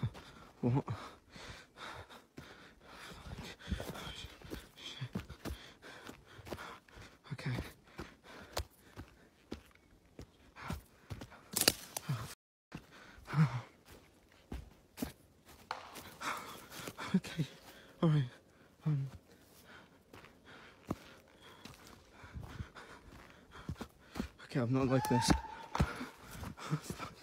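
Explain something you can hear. Footsteps crunch and rustle through dry undergrowth.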